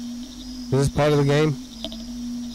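A middle-aged man speaks briefly and loudly into a close microphone.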